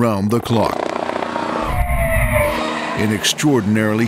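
Tyres screech as a car skids on the road.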